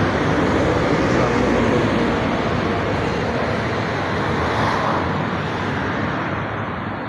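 A bus engine rumbles steadily outdoors.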